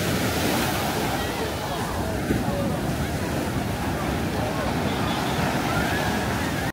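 Waves break and wash onto the shore steadily.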